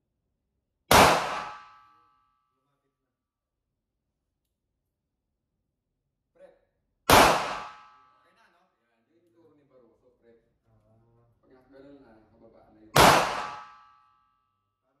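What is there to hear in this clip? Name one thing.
A pistol fires loud single shots that ring out in an echoing indoor range.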